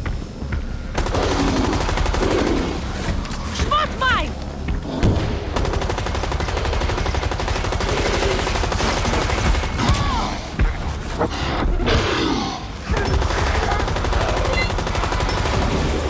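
An automatic rifle fires in bursts.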